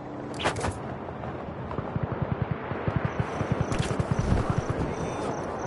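Wind rushes loudly past while gliding through the air.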